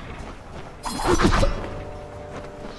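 A magic blast bursts with a sharp crackle.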